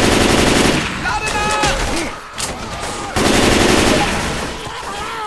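A young man speaks into a microphone with animation.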